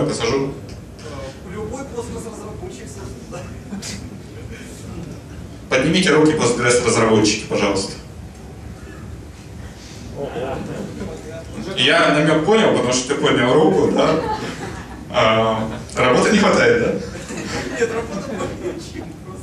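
A young man speaks with animation through a microphone and loudspeakers in an echoing hall.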